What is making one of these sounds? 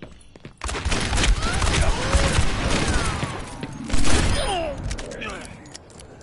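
A revolver fires sharp shots.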